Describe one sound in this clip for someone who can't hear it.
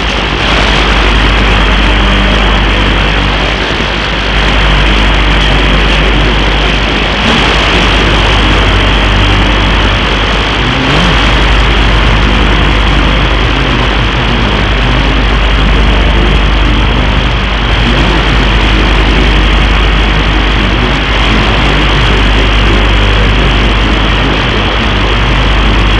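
A radio hisses and crackles with heavy static while tuned to a weak station.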